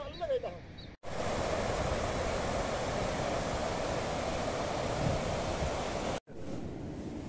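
A river rushes loudly nearby.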